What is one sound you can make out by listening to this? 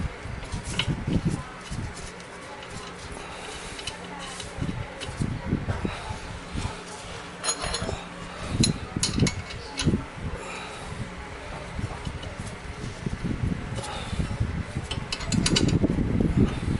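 Metal parts clink and scrape as a brake caliper is handled.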